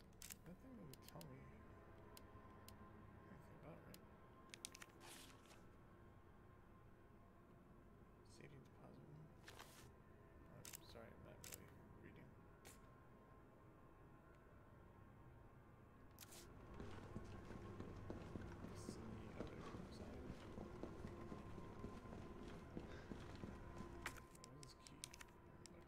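Menu selections click with short soft beeps.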